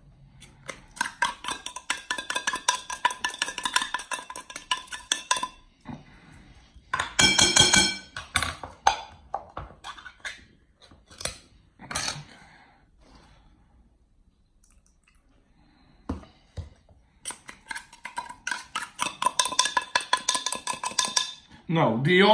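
A pepper grinder crunches in quick, rhythmic clicks.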